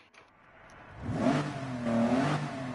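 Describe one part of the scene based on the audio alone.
A sports car engine idles and revs.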